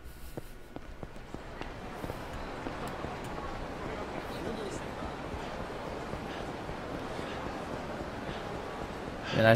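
Footsteps run quickly on pavement.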